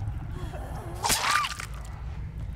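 A heavy blade strikes a body with a wet thud.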